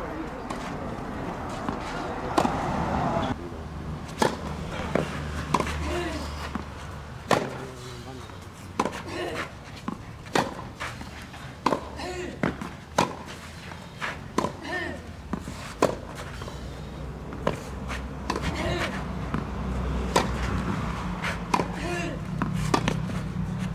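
A tennis ball bounces on a clay court.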